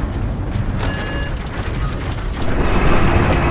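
A heavy door slides open with a mechanical rumble.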